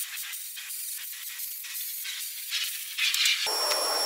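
An angle grinder whines and grinds against steel.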